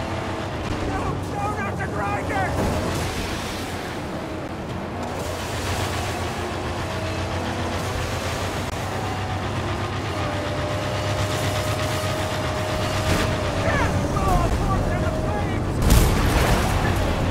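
A car engine roars steadily at speed.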